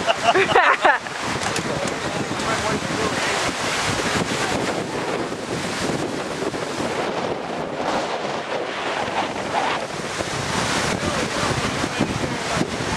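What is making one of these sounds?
Strong wind rushes and buffets outdoors.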